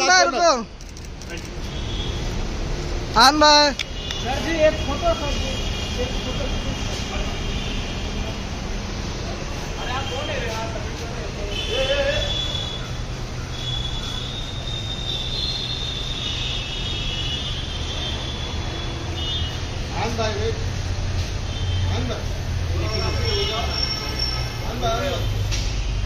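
Several men talk and call out nearby, outdoors.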